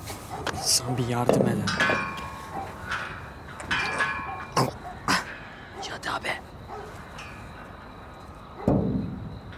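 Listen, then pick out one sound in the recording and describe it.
A man grunts and breathes hard with effort, close by.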